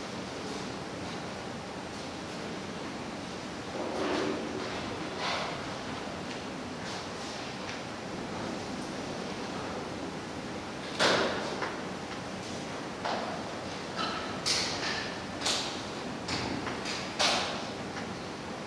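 Footsteps and knocks sound on a wooden stage.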